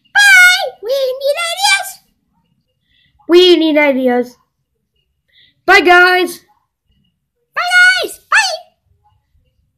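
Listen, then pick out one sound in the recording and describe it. A young boy speaks up close in a high, animated voice, in short bursts.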